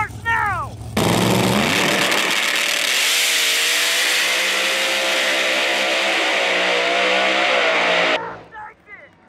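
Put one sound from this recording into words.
A drag racing car engine roars at full throttle as the car launches and speeds away.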